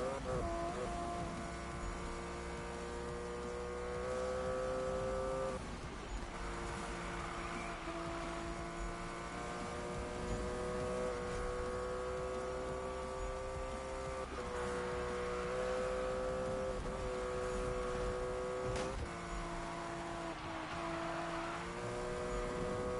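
A sports car engine revs high and shifts through its gears.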